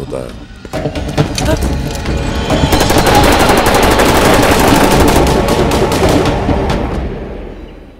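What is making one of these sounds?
Rifles fire in a loud, rapid volley.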